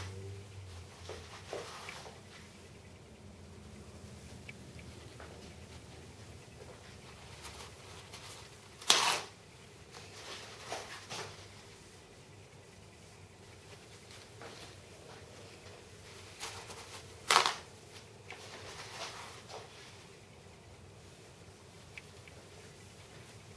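A paper towel roll unrolls and rustles across a surface.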